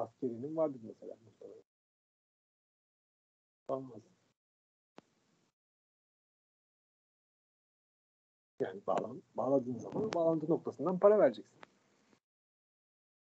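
A man lectures calmly over an online call, with pauses.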